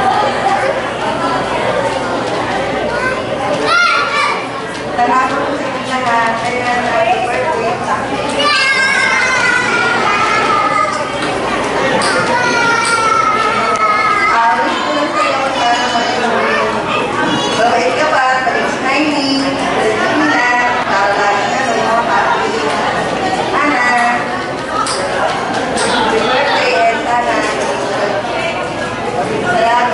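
A young woman speaks with animation into a microphone over loudspeakers in an echoing hall.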